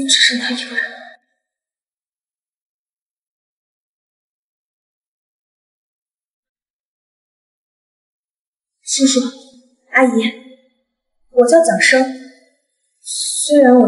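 A young woman speaks calmly and sadly, close by.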